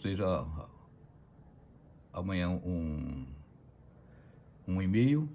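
An older man speaks calmly in short phrases close by.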